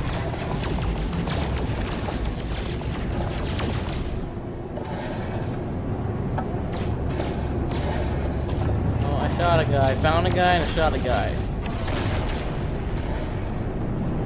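A spaceship engine hums and roars steadily.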